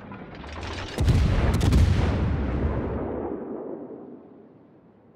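Shells explode in the water with loud blasts.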